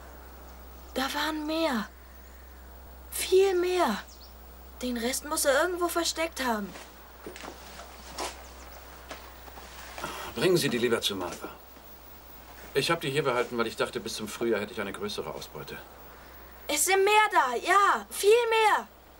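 Men talk calmly in turns, close by.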